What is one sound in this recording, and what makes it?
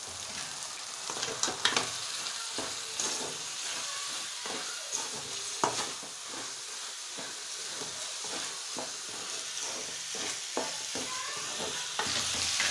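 A wooden spatula scrapes and clatters against a metal pan.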